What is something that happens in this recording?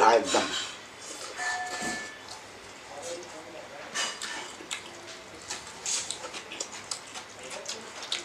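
A man chews rice close to a microphone.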